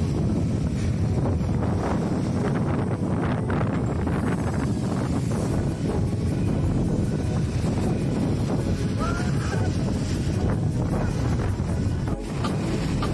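Wind blusters loudly.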